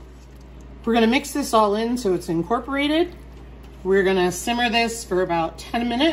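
A spatula stirs sauce and meat in a frying pan.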